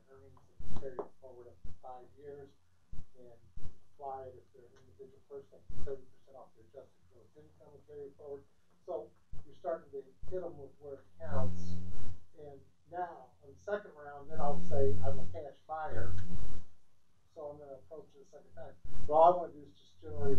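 A man speaks steadily to an audience in a room with some echo.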